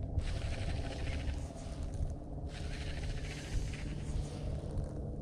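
A fishing reel whirs and clicks as its handle is cranked.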